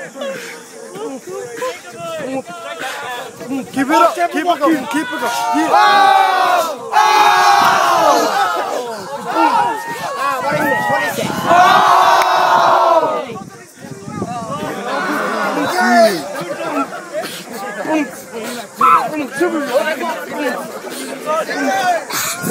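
Young men laugh and call out close by.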